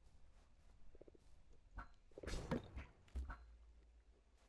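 A block breaks apart with a dull crunch.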